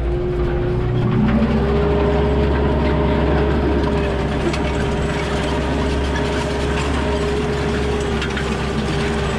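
A harrow scrapes and rattles through dry soil.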